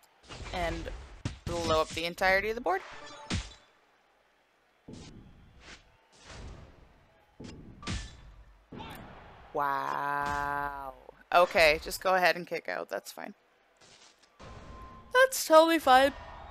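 Video game sound effects chime as gems clear.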